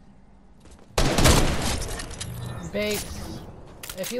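Gunshots fire in a sharp burst.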